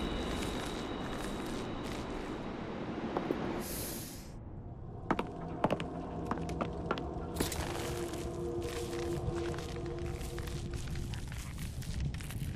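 A rope creaks as someone climbs it.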